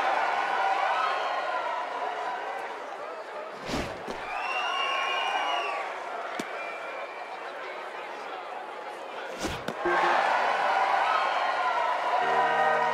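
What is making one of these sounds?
A stadium crowd cheers and murmurs steadily.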